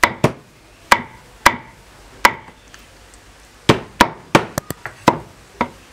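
A cleaver chops sharply against a hot metal plate, in quick knocks.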